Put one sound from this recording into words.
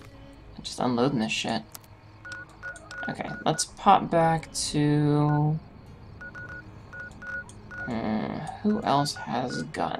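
Soft electronic beeps and clicks sound as a menu is operated.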